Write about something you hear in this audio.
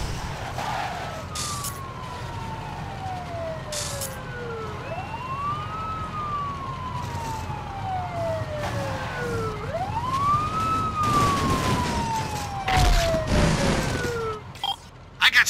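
A police siren wails nearby, slowly rising and falling.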